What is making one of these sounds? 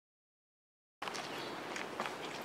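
Footsteps walk along a wet pavement outdoors.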